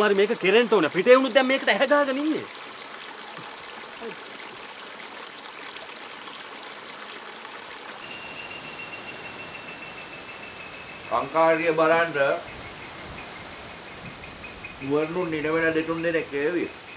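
A man speaks up close in a calm, low voice.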